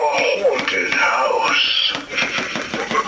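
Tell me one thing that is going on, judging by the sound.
A talking toy figure cackles and speaks in a gravelly man's voice through a small tinny loudspeaker.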